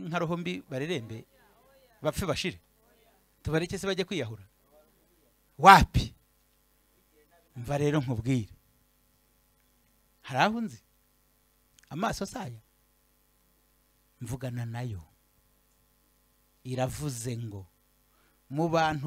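A man speaks in short phrases with pauses, heard through a loudspeaker.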